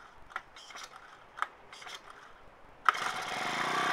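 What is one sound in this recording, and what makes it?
A starter cord is yanked sharply.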